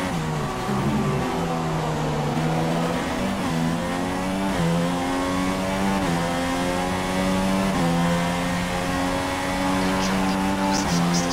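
A racing car engine screams at high revs, its pitch climbing and dropping sharply with each gear change.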